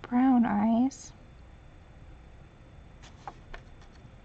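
A sheet of stiff paper rustles softly as it is handled.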